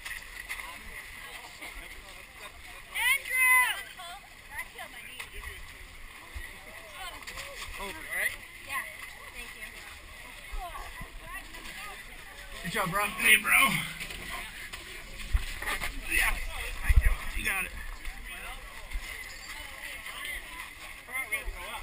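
Young men and women talk and shout close by.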